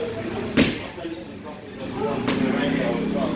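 A punching bag thuds under hard punches.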